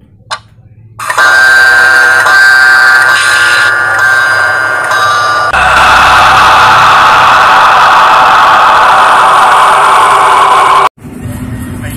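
Dramatic film music plays loudly from a phone speaker.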